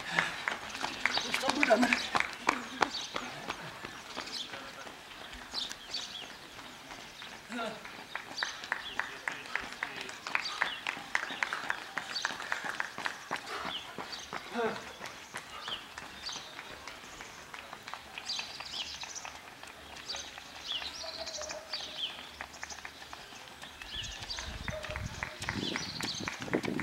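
Running footsteps slap on the road as a runner passes close by.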